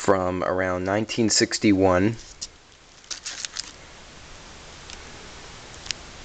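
A plastic-wrapped record sleeve crinkles and rustles as it is handled.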